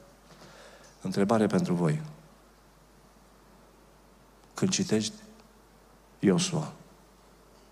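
An older man speaks emphatically into a microphone, in short bursts with long pauses.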